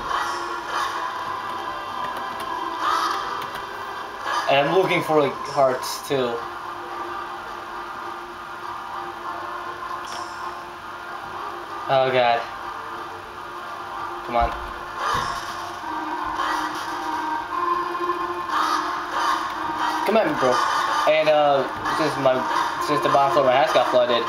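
Video game music plays through small laptop speakers.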